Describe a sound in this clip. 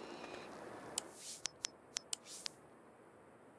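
A phone menu clicks and beeps.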